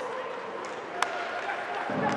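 A puck cracks off a stick.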